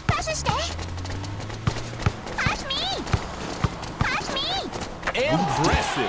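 A basketball bounces on a hard court in a steady dribble.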